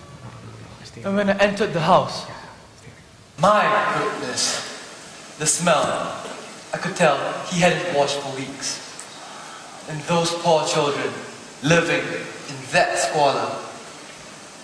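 A young man speaks with animation through a microphone, echoing in a large hall.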